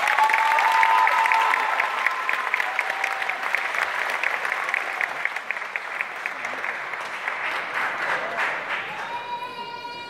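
A children's band plays brass instruments in an echoing hall.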